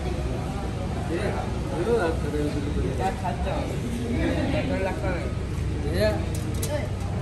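Adults and children chatter nearby in a large echoing room.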